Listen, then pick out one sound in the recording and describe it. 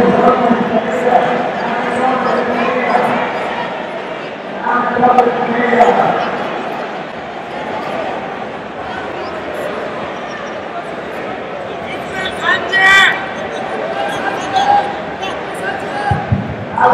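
People in a crowd shout loud encouragement from close by.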